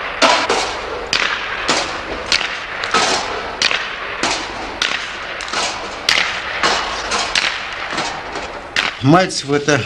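Ice skates scrape and hiss sharply on ice in rhythmic strokes.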